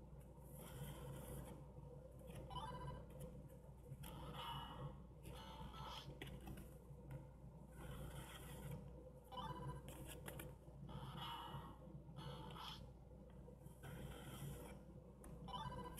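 A paper card slides through a card reader with a soft scrape.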